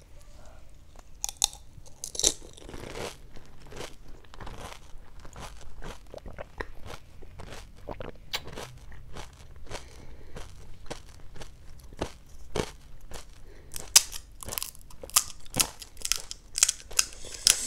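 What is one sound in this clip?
A woman chews loudly with wet, crunchy bites.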